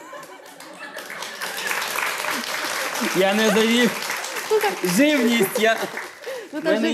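A studio audience claps and applauds loudly.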